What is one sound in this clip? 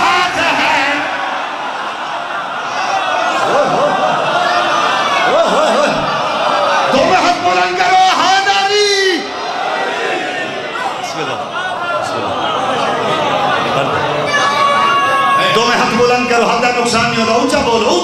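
A young man sings loudly into a microphone, heard through loudspeakers.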